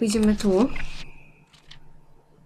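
A short electronic tone sounds.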